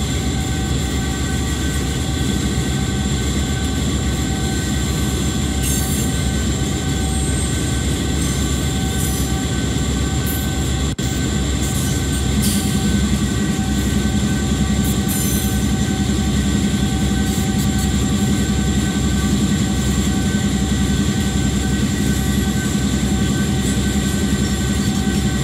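Train wheels clatter over the rails.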